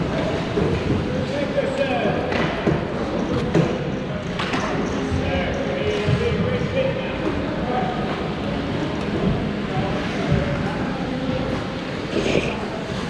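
Young men call out to one another across the ice, with an echo.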